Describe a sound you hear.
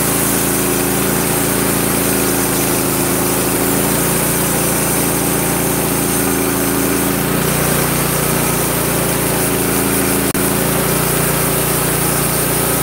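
A sawmill engine runs with a loud, steady drone.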